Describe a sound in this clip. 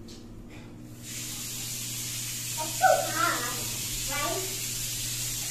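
Water sprays steadily from a shower.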